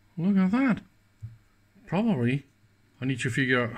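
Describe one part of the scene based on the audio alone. A button clicks softly.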